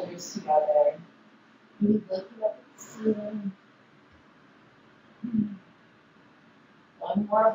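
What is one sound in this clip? A woman speaks calmly, giving instructions close by.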